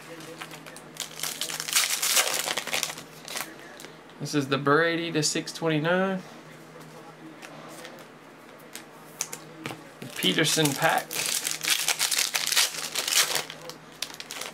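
Foil card packs crinkle and tear as hands open them.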